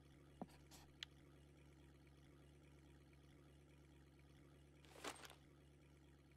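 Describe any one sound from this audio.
Calm water laps softly.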